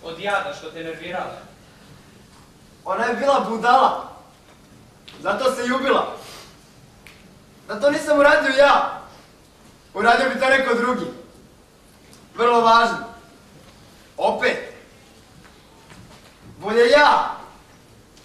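A young man speaks loudly with animation in an echoing hall.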